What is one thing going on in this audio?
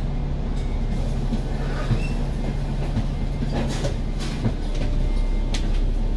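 A bus passes close by.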